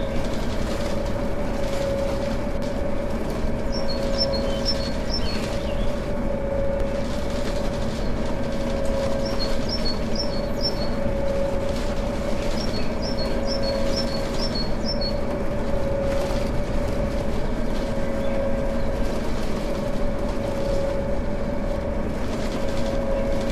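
A bus engine drones steadily.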